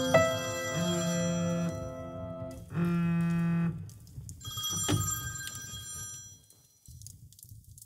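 A piano plays a slow melody close by.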